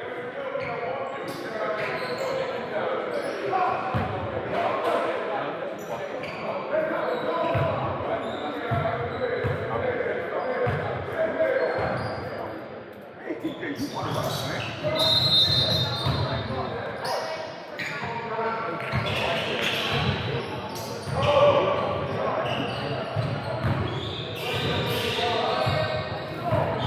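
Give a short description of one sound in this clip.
A basketball bounces on a hardwood court in a large echoing gym.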